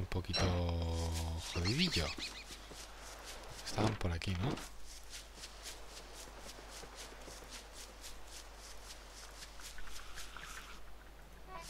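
Quick footsteps patter steadily on dry ground.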